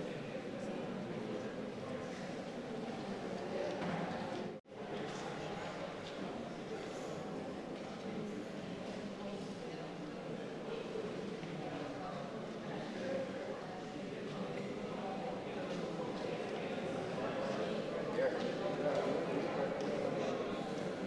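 A crowd of men and women murmur and chat quietly nearby.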